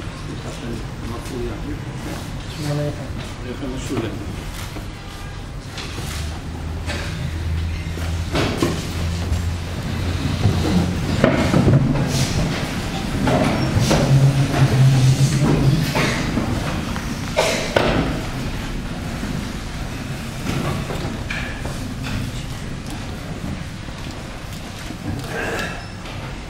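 An elderly man speaks through a microphone and loudspeakers.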